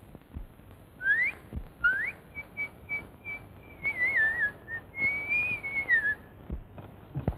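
A man whistles a wavering tune.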